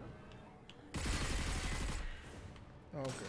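A gun fires rapid crackling energy blasts.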